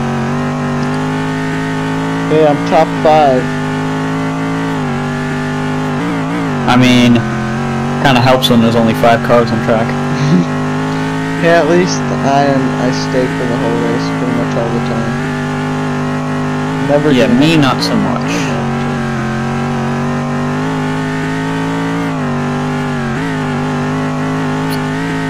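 A racing car engine roars steadily, its pitch rising and falling with the gear changes.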